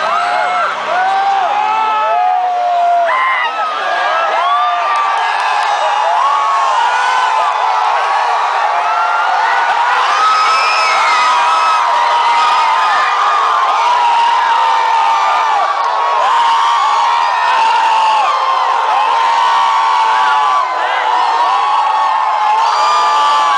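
A large crowd screams and cheers loudly in a big hall.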